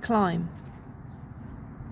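A finger presses a button on a meter with a soft click.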